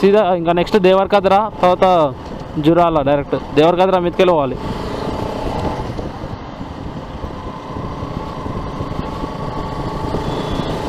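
A motorcycle engine runs steadily while riding along a road.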